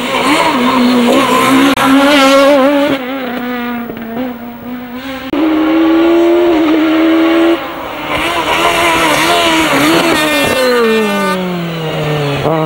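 A rally car engine roars loudly at high revs.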